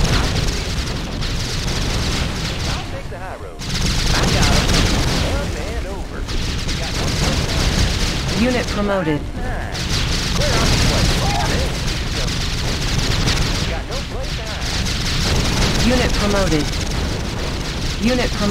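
Explosions boom and gunfire rattles in a battle.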